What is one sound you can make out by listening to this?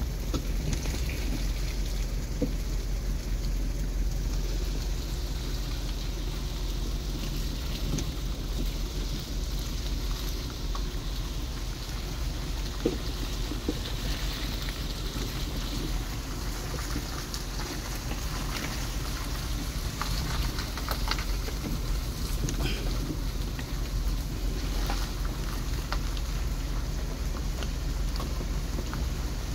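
Wind blows steadily outdoors, rustling leaves and buffeting close by.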